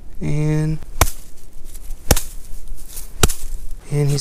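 A wooden stick knocks sharply several times.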